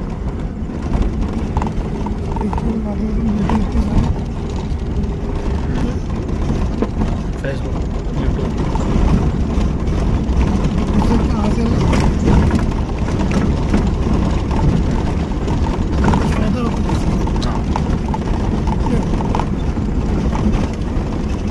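A vehicle's body creaks and clatters over bumps.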